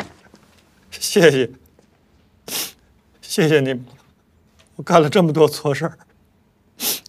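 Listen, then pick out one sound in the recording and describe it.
A middle-aged man speaks nearby in a choked, tearful voice.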